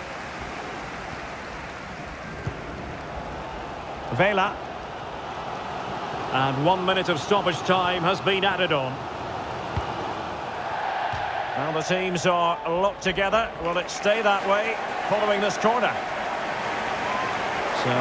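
A large crowd murmurs and cheers steadily in a stadium.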